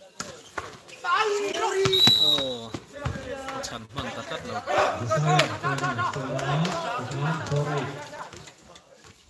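Young men shout and cheer nearby outdoors.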